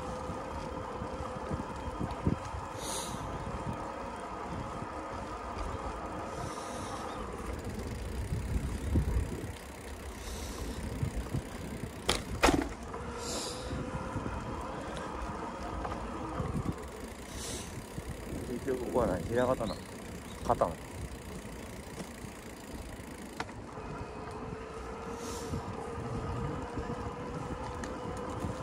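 Bicycle tyres roll steadily over rough asphalt.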